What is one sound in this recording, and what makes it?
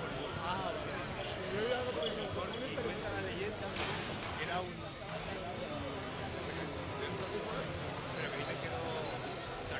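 Basketballs bounce on a wooden court in a large echoing hall.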